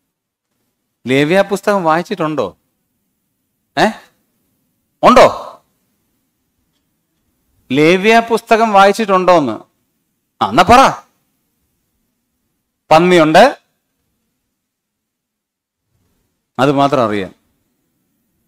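A man speaks calmly into a microphone, lecturing in short phrases.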